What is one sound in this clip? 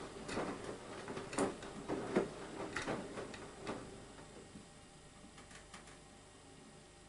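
Water sloshes and splashes inside a washing machine drum.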